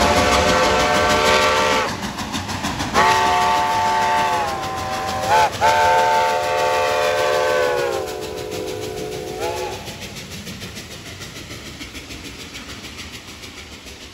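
A steam locomotive chuffs and hisses as it passes.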